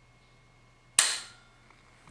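A rifle's trigger snaps with a sharp dry click.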